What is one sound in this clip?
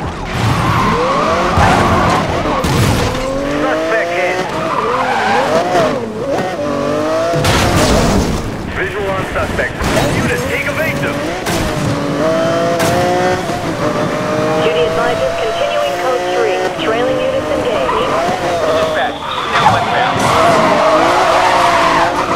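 Tyres screech as a car skids and drifts.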